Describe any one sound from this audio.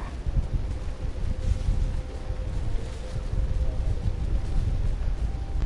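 Footsteps crunch over leaves and dirt.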